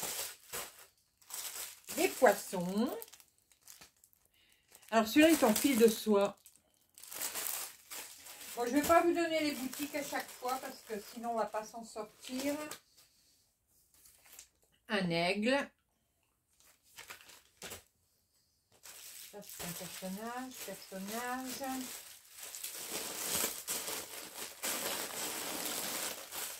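Plastic packets crinkle and rustle as they are handled.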